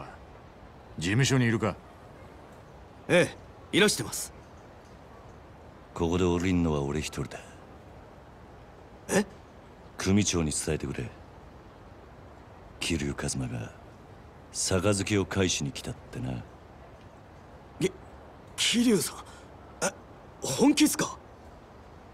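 A younger man answers in a surprised, excited voice.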